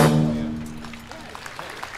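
A brass band holds a final chord outdoors.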